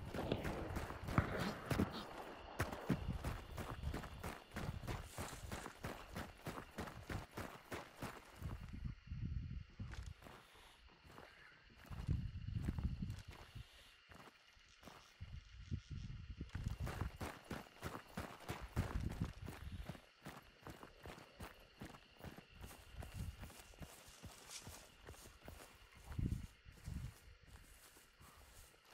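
Footsteps crunch steadily over dirt and dry leaves.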